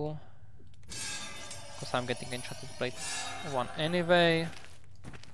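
A magic spell rings out with a bright, shimmering chime.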